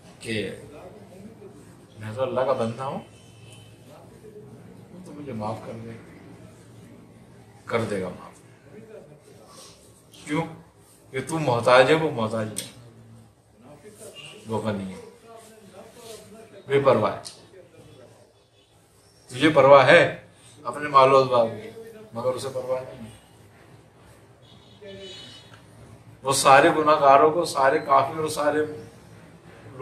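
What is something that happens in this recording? An elderly man speaks calmly and with feeling, close to a microphone, in short bursts with pauses.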